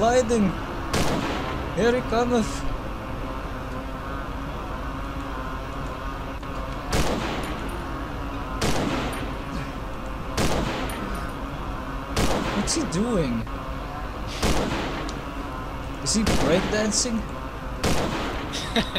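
A gun fires loud single shots that echo.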